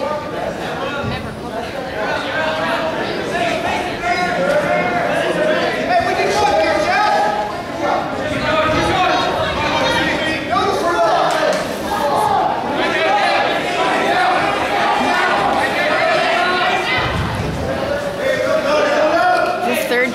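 A crowd of spectators shouts and cheers throughout in an echoing gym.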